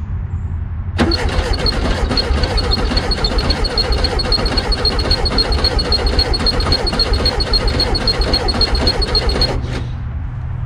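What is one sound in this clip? A car engine's starter cranks over and over without catching.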